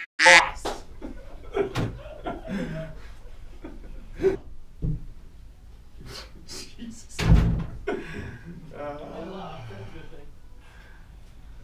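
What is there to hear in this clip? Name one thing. A man speaks casually nearby.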